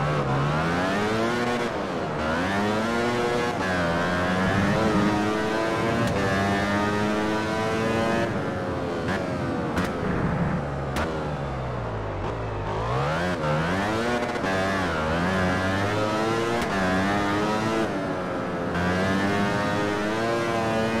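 A racing motorcycle engine screams, rising and falling in pitch as it revs up and shifts gears.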